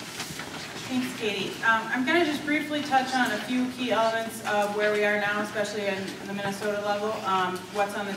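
A woman speaks calmly to a room, close by.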